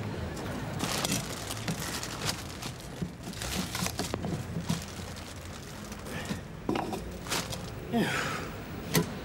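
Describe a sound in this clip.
A hand rubs and scrubs a glass windscreen.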